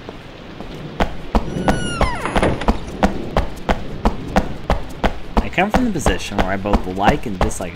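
Footsteps tap steadily on a hard floor in an echoing hall.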